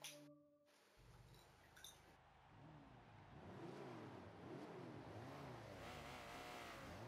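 A car engine idles and revs up and down.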